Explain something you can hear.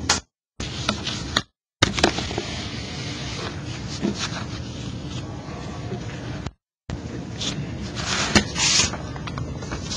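Fingers brush and tap against a sheet of paper.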